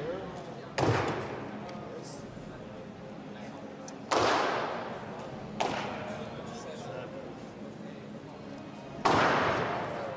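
A heavy barbell crashes onto the floor and echoes through a large hall.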